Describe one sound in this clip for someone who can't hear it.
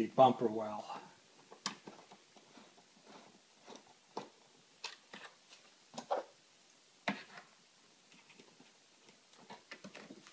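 A screwdriver clicks and scrapes against plastic.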